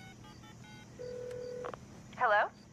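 A phone line tone sounds faintly through a handset.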